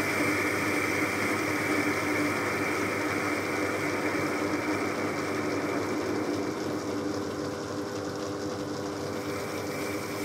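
A cutting tool scrapes and whines against turning metal.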